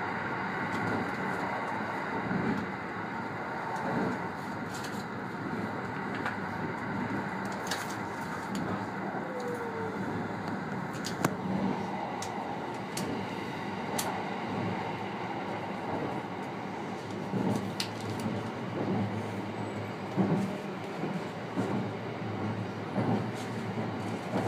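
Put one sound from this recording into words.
An electric train hums and rumbles along the track from inside the driver's cab.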